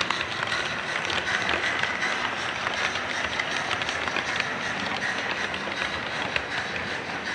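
A model train rumbles along its track with a steady whir.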